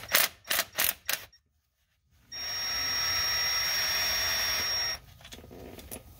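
A metal tool scrapes and taps against metal.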